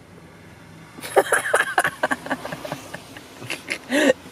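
A young man laughs loudly up close.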